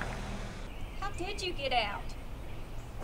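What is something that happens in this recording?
A woman speaks from a short distance.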